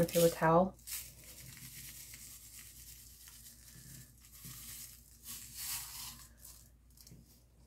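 Small plastic granules pour and rattle out of a plastic cup onto fabric.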